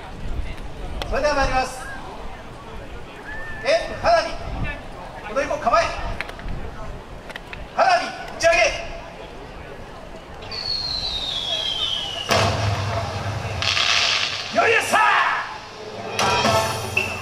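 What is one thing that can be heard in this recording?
A group of young dancers shout in chorus outdoors.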